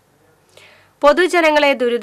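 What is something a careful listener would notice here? A woman reads out the news calmly into a microphone.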